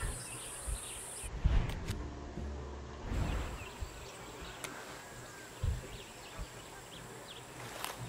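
Wind rustles through palm leaves outdoors.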